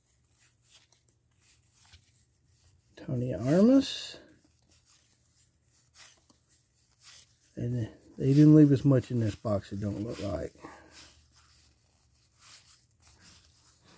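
Stiff paper cards rustle and slide against each other.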